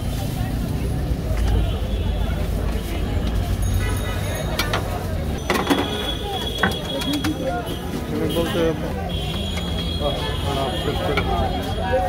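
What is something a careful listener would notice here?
A metal spatula scrapes and clinks against a griddle.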